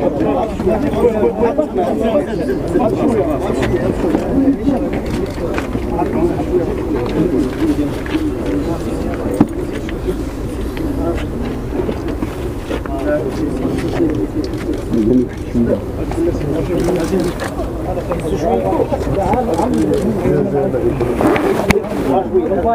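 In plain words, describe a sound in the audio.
A crowd of men murmur and chant together outdoors.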